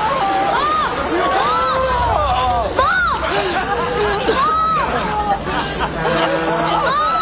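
A group of men and women scream and shout in a close, chaotic struggle.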